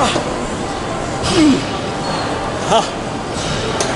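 A young man grunts and strains.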